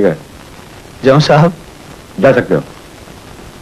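A middle-aged man answers briefly.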